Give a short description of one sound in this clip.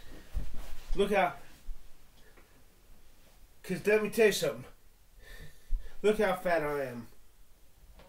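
A man talks with animation in short bursts.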